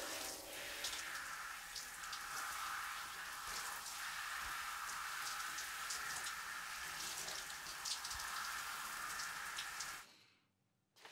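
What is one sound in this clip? Shower water sprays and splashes steadily.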